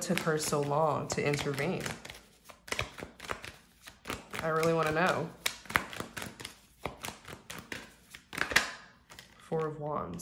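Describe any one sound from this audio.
Playing cards riffle and slide as they are shuffled.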